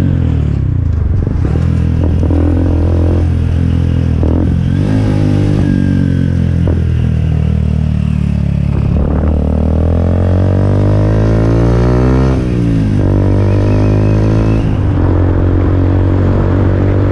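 A motorcycle engine roars loudly up close, revving up and down as it rides.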